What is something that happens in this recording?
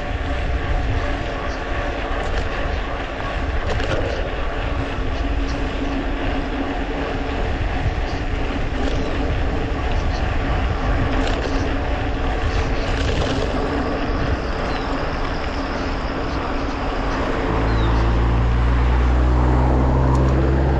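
Bicycle tyres hum on rough asphalt.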